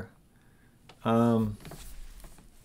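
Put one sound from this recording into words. A middle-aged man hums a long, drawn-out note close to a microphone.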